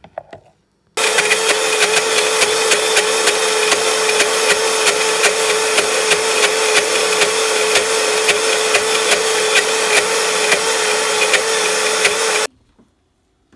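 A blender motor whirs loudly and steadily.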